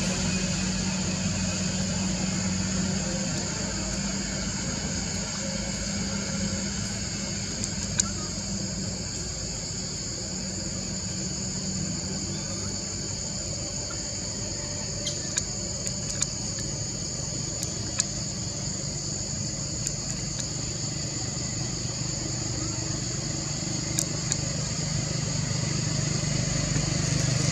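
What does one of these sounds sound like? Leaves and thin twigs rustle and snap as a small monkey climbs through a tree.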